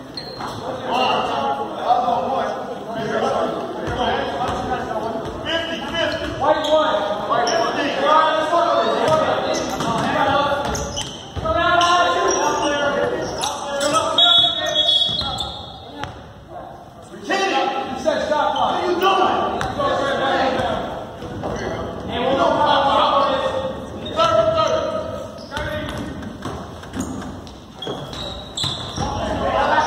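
Adults talk with animation close by in a large echoing hall.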